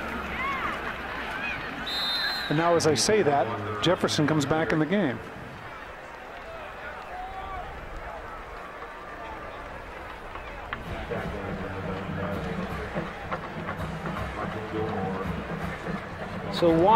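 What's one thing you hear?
A stadium crowd cheers loudly, then settles into a steady murmur.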